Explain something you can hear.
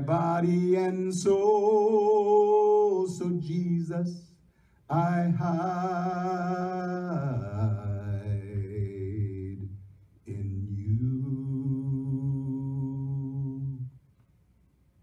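A man sings slow, held notes through a microphone in a large echoing hall.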